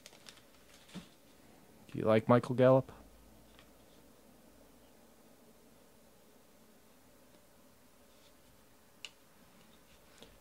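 Playing cards slide and rustle against each other in hands.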